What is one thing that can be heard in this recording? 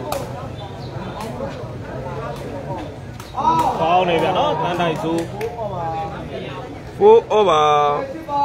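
A ball thuds against a player's foot.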